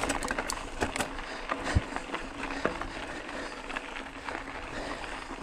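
A bicycle frame clatters and knocks over bumps.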